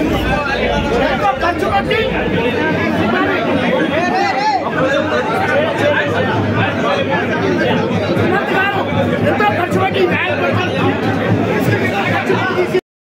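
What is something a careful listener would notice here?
A crowd of men talks and shouts all at once, close by.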